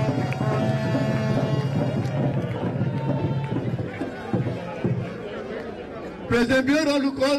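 A crowd murmurs in the open air.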